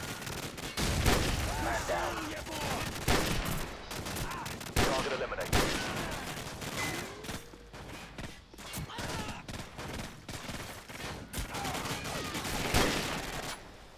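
Rifle shots crack loudly, one at a time.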